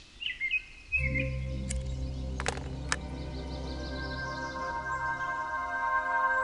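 A magical shimmering chime swells as a basin glows.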